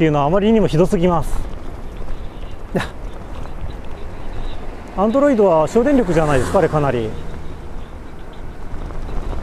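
A car drives steadily along a road.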